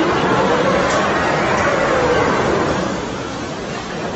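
A roller coaster rattles and rumbles along its track.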